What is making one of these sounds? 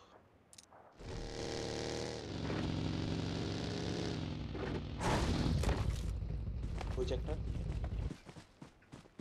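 A small vehicle engine revs and drones.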